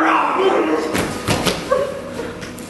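A body drops and thuds onto a wooden floor.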